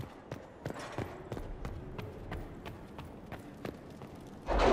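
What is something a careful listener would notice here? Footsteps tap steadily on a stone floor in an echoing hall.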